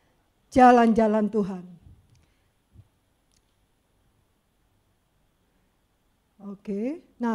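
A woman speaks expressively into a microphone, with pauses.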